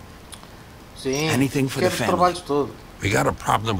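A young man answers briefly in a low voice.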